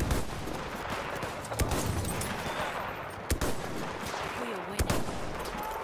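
A rifle fires in loud, sharp single shots.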